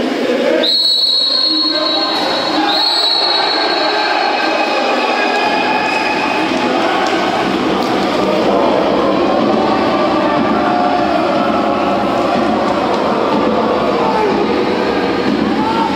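Players splash and thrash in the water of a large echoing pool.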